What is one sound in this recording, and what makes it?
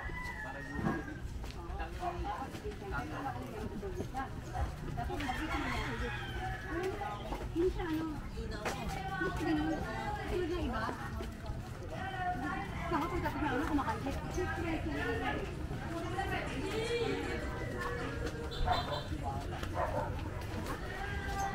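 Footsteps scuff along a paved path.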